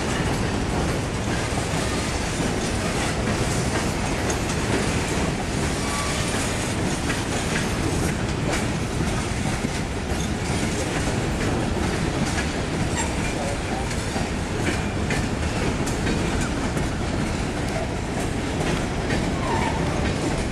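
Freight cars rumble slowly past on the rails.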